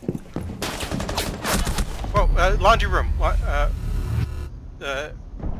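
Gunshots fire in rapid bursts nearby.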